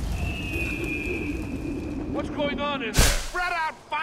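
Wind rushes past during a fast fall.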